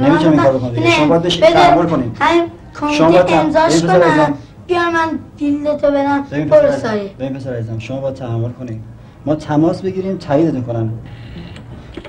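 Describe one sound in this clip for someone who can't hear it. A boy speaks earnestly nearby.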